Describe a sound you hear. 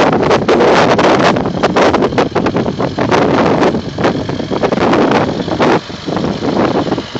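An off-road truck engine revs loudly nearby.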